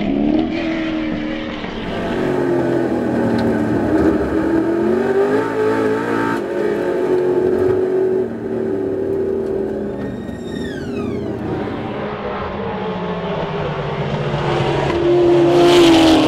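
A racing car engine roars loudly and shifts pitch as the car accelerates and changes gear.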